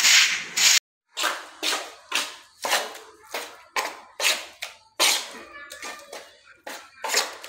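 A trowel scrapes and slaps through thick wet mortar in a bucket.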